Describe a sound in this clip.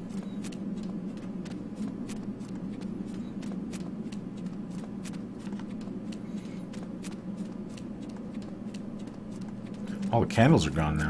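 Footsteps crunch steadily on a stone floor.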